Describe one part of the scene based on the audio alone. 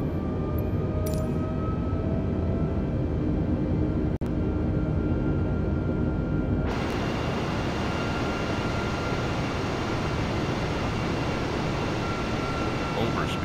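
Jet engines hum and roar steadily, muffled at first and then louder and brighter.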